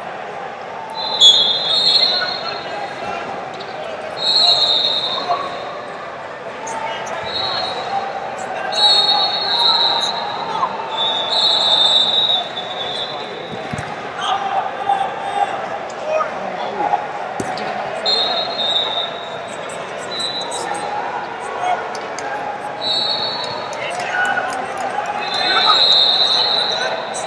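Wrestling shoes squeak sharply on a rubber mat.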